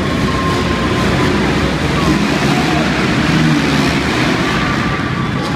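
Dirt bike engines roar as the bikes race off.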